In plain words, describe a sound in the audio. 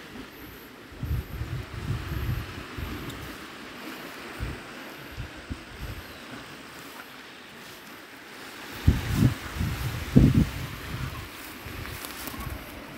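Wind gusts outdoors, buffeting loudly now and then.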